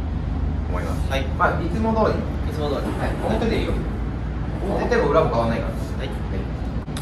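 A young man talks calmly, close by.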